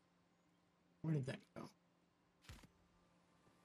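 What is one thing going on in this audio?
Short clicks sound as menu items are picked.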